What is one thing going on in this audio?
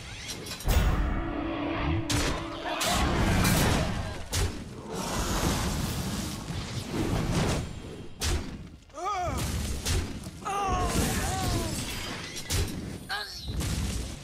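Cartoonish battle sound effects thump and crash.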